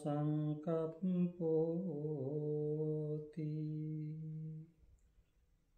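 A man chants in a deep, steady voice close by, then falls silent.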